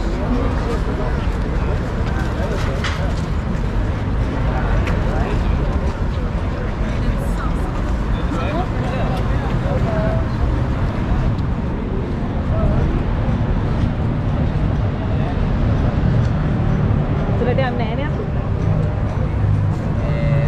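Wind rumbles steadily across an open outdoor space.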